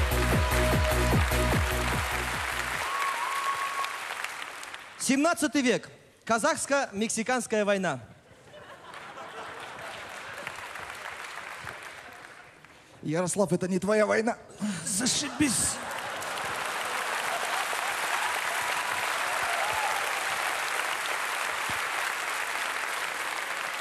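A large audience claps and cheers in a big echoing hall.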